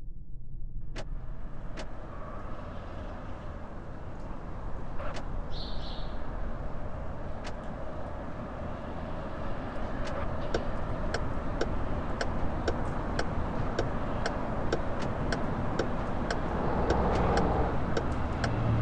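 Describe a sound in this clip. Tyres rumble and clatter over cobblestones.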